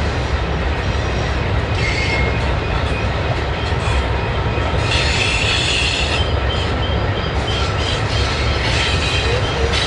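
A long train rumbles steadily across a bridge in the distance.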